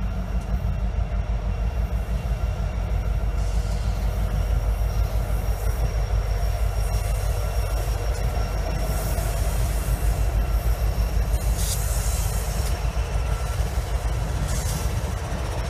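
Diesel locomotives rumble steadily as a freight train rolls past.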